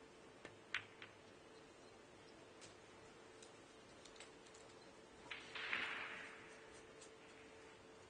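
Billiard balls knock together with light clicks.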